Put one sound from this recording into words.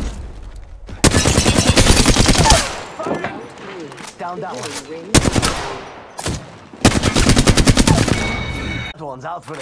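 Rapid gunfire rattles loudly in short bursts.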